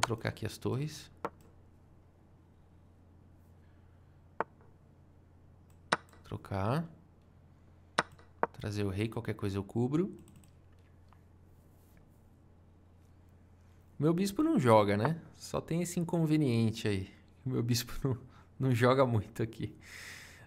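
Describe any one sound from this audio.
A man talks thoughtfully into a close microphone, in short bursts with pauses.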